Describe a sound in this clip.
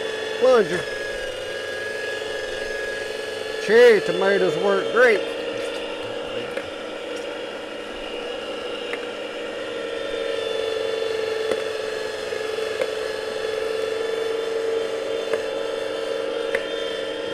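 A plastic plunger knocks and squelches as tomatoes are pushed down.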